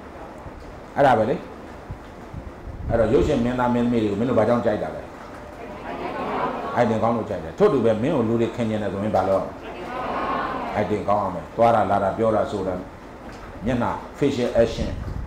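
An elderly man reads aloud into a microphone.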